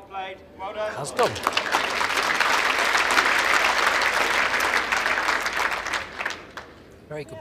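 A crowd applauds and cheers in a large hall.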